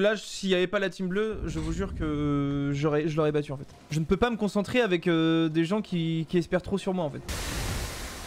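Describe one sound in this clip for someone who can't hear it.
A young man talks animatedly and close into a microphone.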